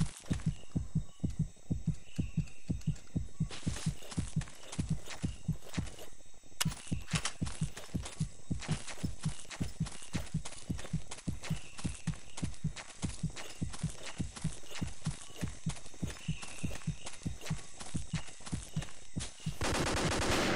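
Footsteps thud quickly and steadily on grass as someone runs.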